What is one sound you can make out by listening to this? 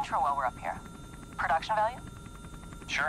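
A young woman talks calmly through a headset microphone.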